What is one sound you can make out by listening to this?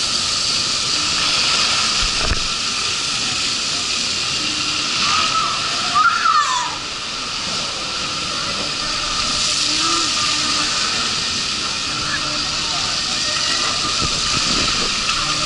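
Water rushes and splashes steadily under a raft sliding down.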